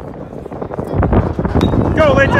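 A metal bat strikes a ball with a sharp ping.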